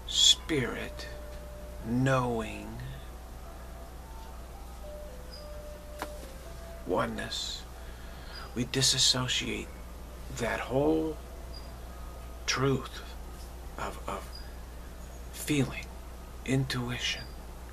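A middle-aged man speaks calmly and close to the microphone, with pauses.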